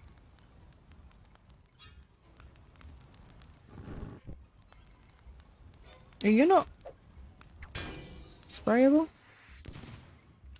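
Flames crackle and hiss softly.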